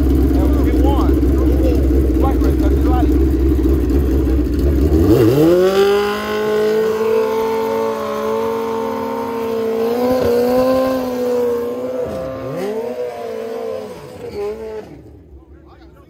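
A motorcycle engine idles loudly, then revs up and roars away into the distance.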